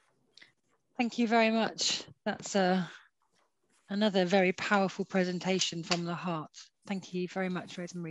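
An older woman speaks over an online call.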